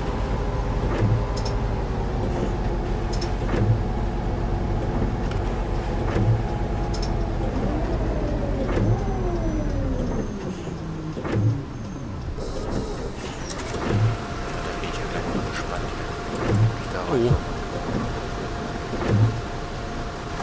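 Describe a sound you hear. Windscreen wipers thump back and forth at a steady beat.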